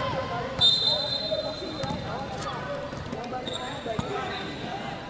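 Children shout and chatter in a large echoing hall.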